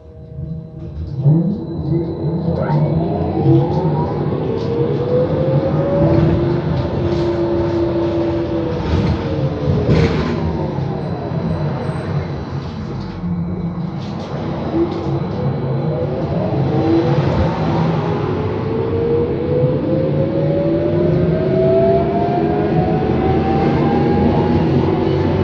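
A bus motor whines, rising in pitch as it speeds up and falling as it slows.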